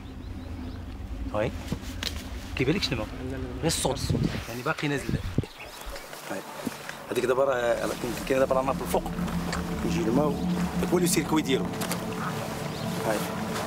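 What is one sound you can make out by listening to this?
A man talks calmly outdoors.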